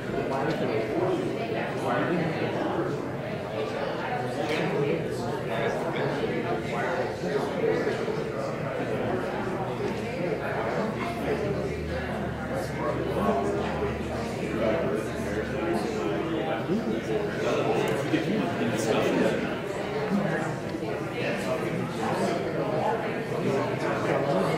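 A crowd of people murmurs and chatters.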